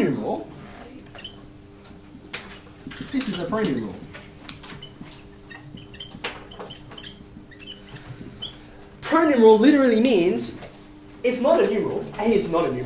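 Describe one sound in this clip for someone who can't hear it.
A man speaks calmly to a class, close by.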